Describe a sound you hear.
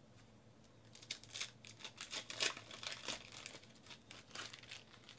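Foil wrapping crinkles and tears as a pack is ripped open.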